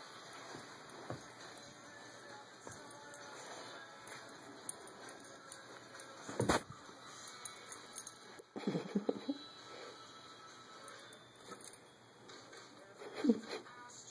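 A small dog growls playfully close by.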